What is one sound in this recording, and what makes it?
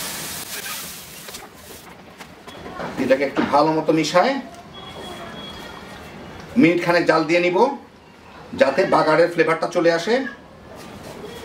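A spatula scrapes and stirs thick curry in a metal pan.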